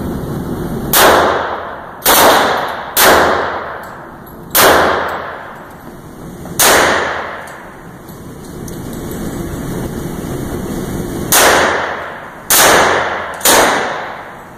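A rifle fires loud single shots that echo in a large indoor hall.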